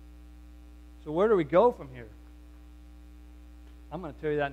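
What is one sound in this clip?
A man speaks through a microphone in a large room, with short phrases and pauses.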